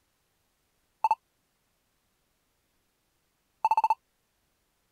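Short electronic beeps chirp in quick bursts.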